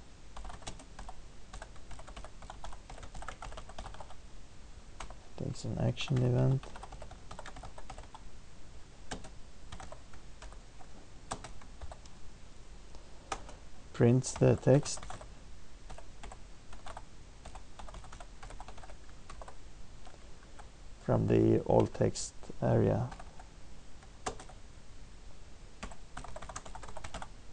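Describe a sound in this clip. Keyboard keys click in quick bursts of typing.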